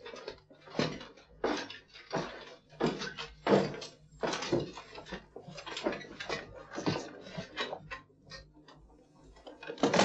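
Chain mail and armour clink as men move.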